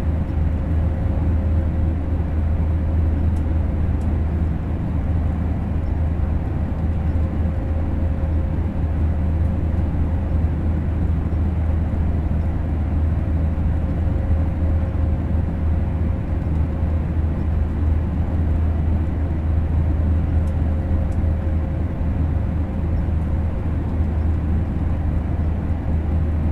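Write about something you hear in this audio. A train rumbles steadily along the tracks with a low, constant hum.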